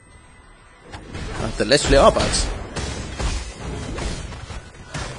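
Fiery spell blasts and combat clashes crackle and boom.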